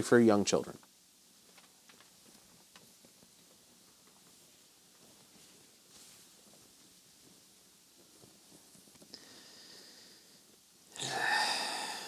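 Cloth rustles as clothes are pulled from a pile.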